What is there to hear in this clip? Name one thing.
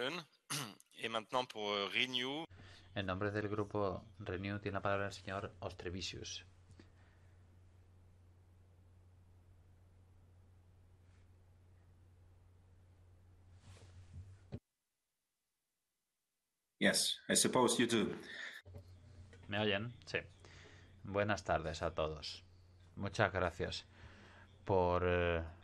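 A middle-aged man speaks calmly through an online call.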